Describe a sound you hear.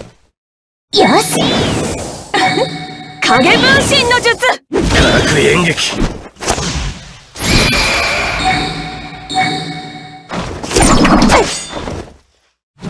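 Whooshing blasts and impacts of a fighting game's attacks ring out loudly.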